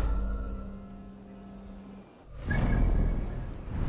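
A deep whoosh swells as a menu opens.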